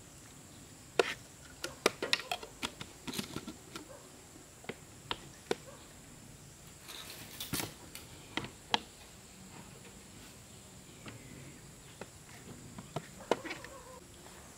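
Glass jars clink and knock on a wooden table.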